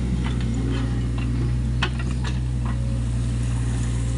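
The steel tracks of a mini excavator clank as it moves.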